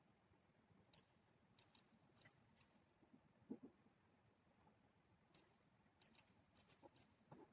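Game pieces click sharply as they are moved.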